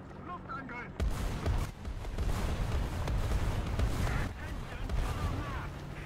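Shells explode with loud booms.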